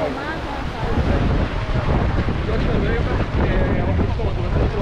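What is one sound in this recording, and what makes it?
Wind blows and rumbles, outdoors.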